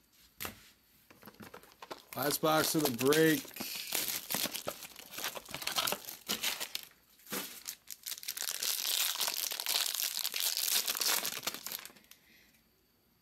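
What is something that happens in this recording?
A foil card pack crinkles and tears as hands open it.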